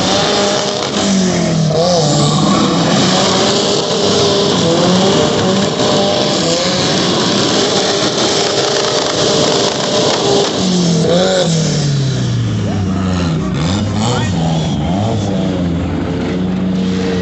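A car engine revs hard and drops again as the car drifts.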